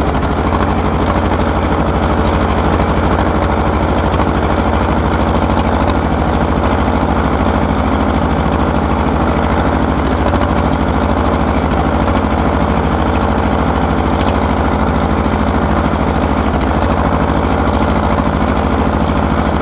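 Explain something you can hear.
An old tractor engine chugs loudly and steadily up close.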